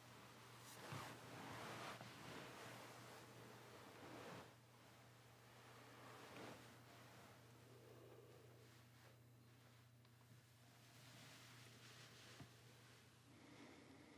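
Bedding rustles as two people move close together.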